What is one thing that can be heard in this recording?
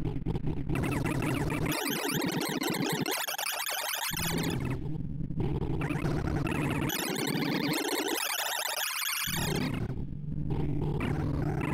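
Rapid electronic bleeps chatter and shift in pitch without pause.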